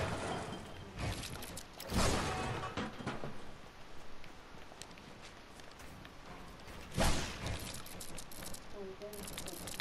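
Building pieces clunk into place in quick bursts.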